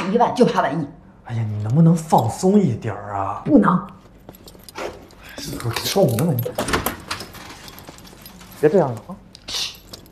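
A young woman speaks with irritation, close by.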